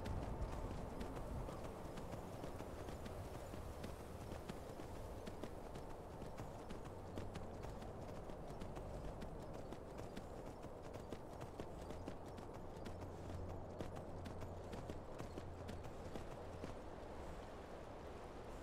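Hooves thud rapidly on snow as a horse gallops.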